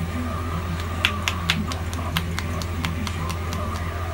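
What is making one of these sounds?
Fingers tap sharply and quickly on a head.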